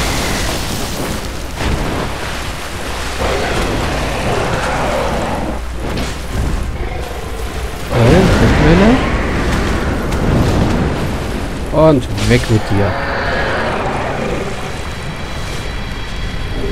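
Huge wings beat with heavy whooshes.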